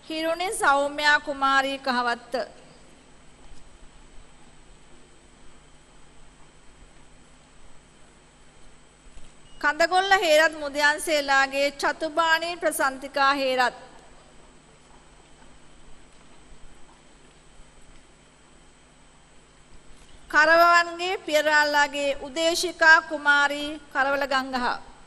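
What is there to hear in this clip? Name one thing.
A woman reads out slowly over a loudspeaker in a large hall.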